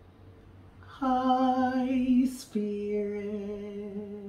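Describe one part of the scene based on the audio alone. A young man sings long, held notes close by.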